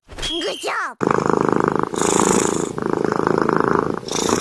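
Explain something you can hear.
A cat purrs steadily, close by.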